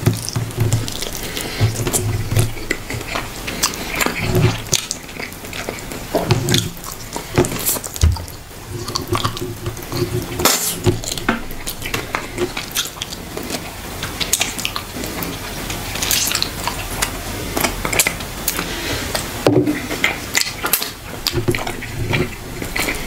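A young man chews food wetly and smacks his lips close to a microphone.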